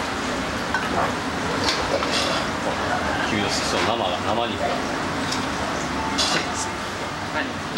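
A metal ladle clanks against a wok.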